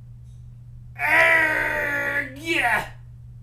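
A man growls and speaks in a gruff, theatrical voice close by.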